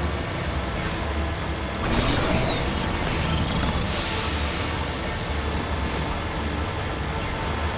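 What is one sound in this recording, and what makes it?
Water splashes and sprays as a vehicle drives through it.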